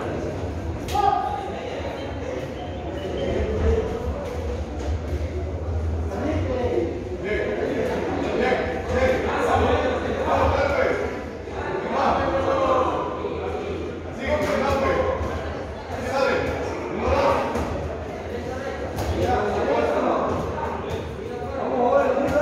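Boxing gloves thud as punches land.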